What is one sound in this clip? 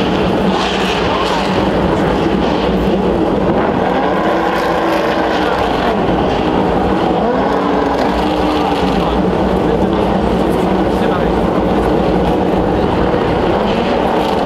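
Outdoors, a steady rumble of many engines fills the air.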